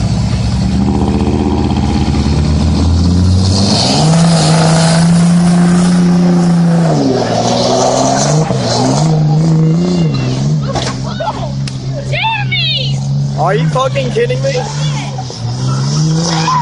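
A truck's diesel engine roars and revs hard nearby.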